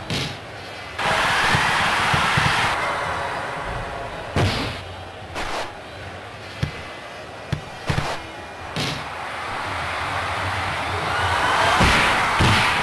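A stadium crowd cheers and roars in swells.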